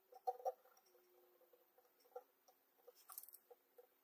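A soldering iron tip sizzles faintly against a wire.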